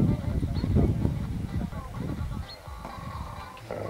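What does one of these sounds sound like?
A horse canters on sand in the distance, hooves thudding softly.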